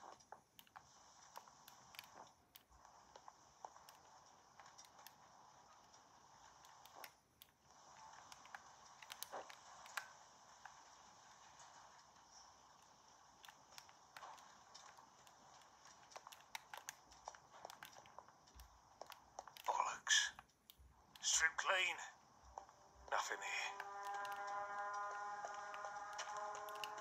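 Buttons on a handheld console click softly.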